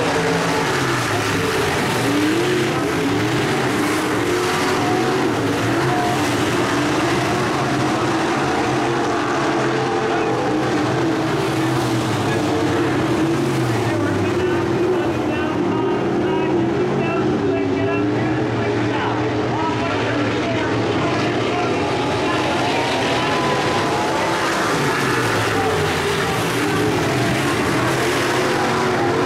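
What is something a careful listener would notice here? Race car engines rise and fall in pitch as the cars pass and slow for the turns.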